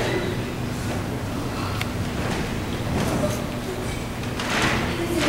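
A children's choir sings with music in a large hall.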